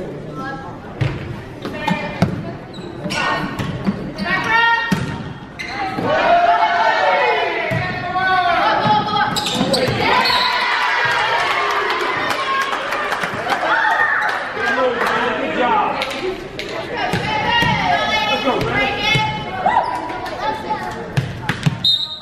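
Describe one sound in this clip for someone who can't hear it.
A volleyball smacks against players' arms and hands.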